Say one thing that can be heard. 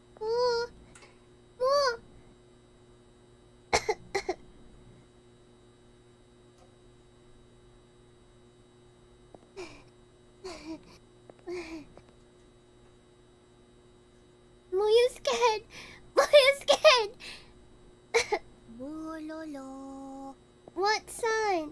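A young woman speaks with animation into a close microphone, her voice high and playful.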